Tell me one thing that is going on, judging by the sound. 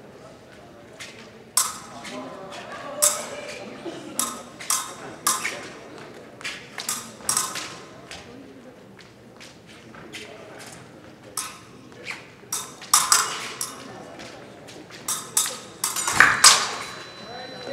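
Fencing blades clash and click sharply again and again.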